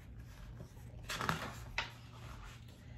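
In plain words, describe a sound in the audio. Book pages rustle as a page turns.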